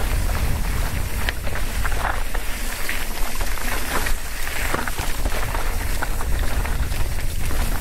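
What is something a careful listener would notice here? Bicycle tyres crunch and rattle over loose rocks and gravel.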